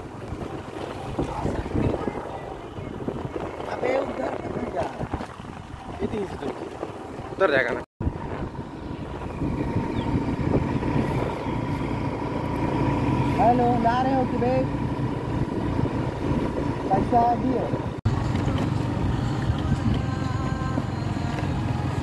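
A motorbike engine hums steadily while riding on a dirt road.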